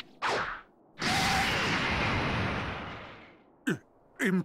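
An energy blast roars loudly and fades away.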